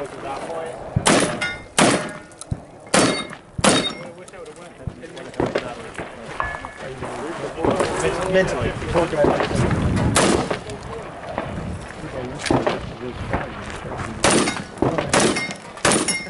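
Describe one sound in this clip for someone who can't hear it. A shotgun fires loud blasts outdoors, echoing off the hills.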